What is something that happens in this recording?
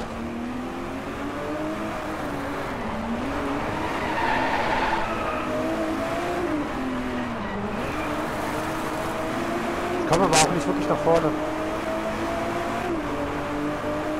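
A racing car engine roars and revs up and down through the gears.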